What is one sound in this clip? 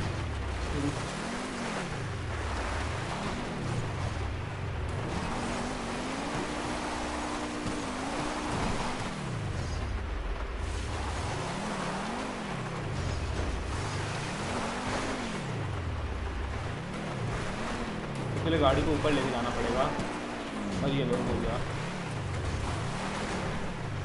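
Tyres crunch and rumble over rough, rocky ground.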